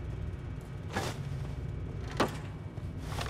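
A metal stall door creaks open.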